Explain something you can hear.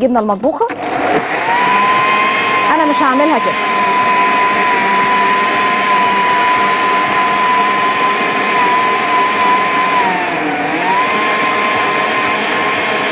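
A blender whirs loudly and steadily.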